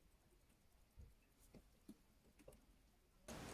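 Tweezers tick and scrape lightly against a small metal watch movement.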